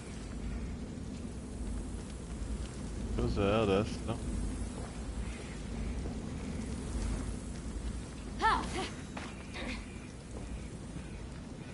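Flames crackle softly.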